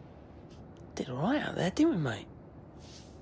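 A second young man answers in a relaxed voice.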